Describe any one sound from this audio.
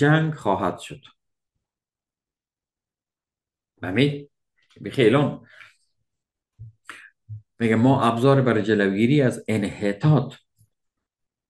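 A middle-aged man speaks calmly into a close microphone, with pauses.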